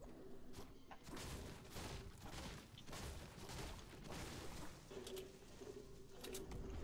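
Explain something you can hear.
A pickaxe strikes wood in quick, repeated chops.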